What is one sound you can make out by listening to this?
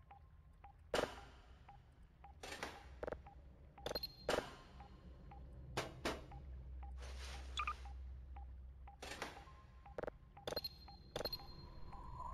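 Buttons click sharply on a control panel.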